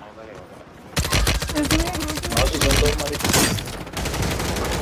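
Rifle shots fire in rapid bursts.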